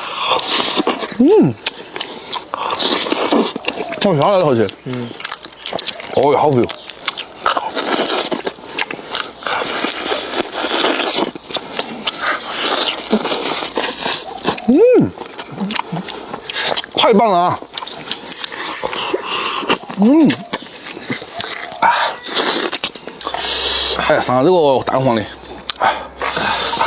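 A young man chews crunchy food noisily, close to a microphone.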